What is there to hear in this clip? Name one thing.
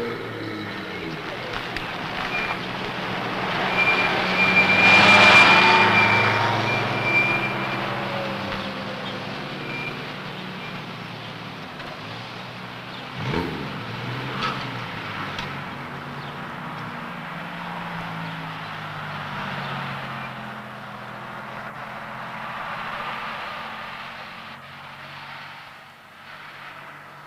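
A car engine hums as a car drives slowly past.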